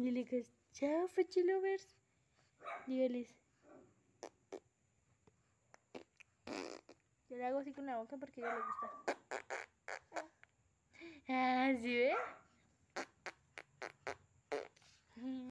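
A young woman speaks close by in a high, playful voice.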